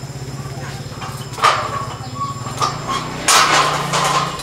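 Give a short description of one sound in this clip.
Metal scaffolding pipes clank and rattle as they are handled.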